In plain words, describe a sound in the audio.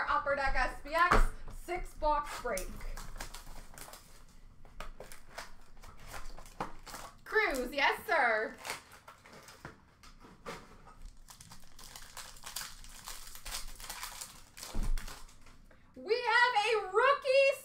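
Plastic-wrapped packs rustle and click as they are handled and dropped into a bin.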